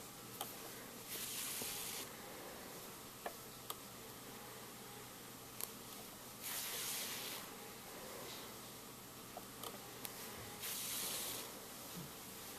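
Yarn rustles as it is drawn through knitted fabric.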